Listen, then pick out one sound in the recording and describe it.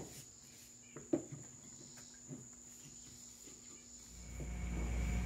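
A brush strokes softly across wood.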